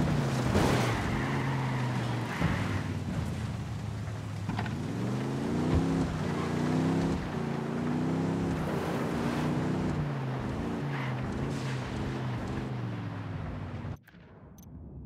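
Tyres hiss on a wet road.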